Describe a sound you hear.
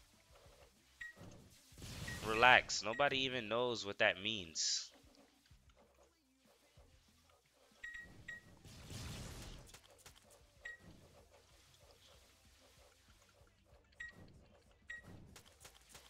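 Short bright chimes ring now and then.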